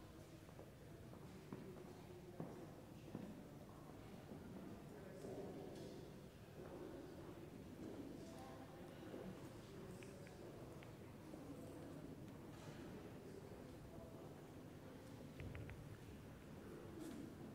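A crowd of men and women murmurs quietly in a large echoing hall.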